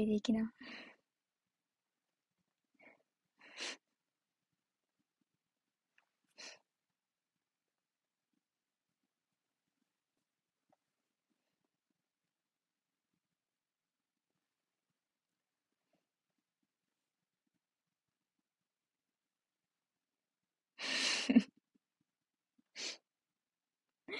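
A young woman speaks softly and briefly, close to a phone's microphone, with long pauses.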